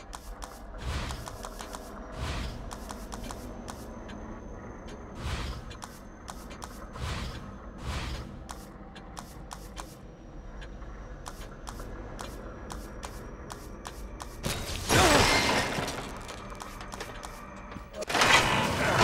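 Short menu clicks sound again and again.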